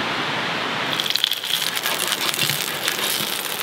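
Sausages sizzle in a hot pan.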